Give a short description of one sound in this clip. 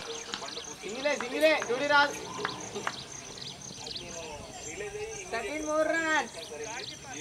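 Men shout to each other outdoors across an open field.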